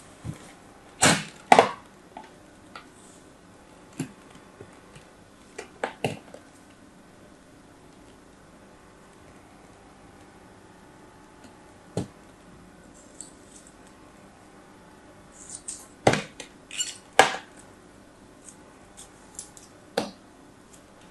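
A small knife scrapes and taps against a plastic mould.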